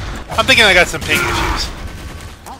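Gunfire and explosions crackle in a loud fight.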